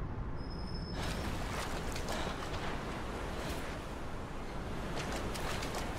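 Water splashes and sloshes as someone wades through shallow surf.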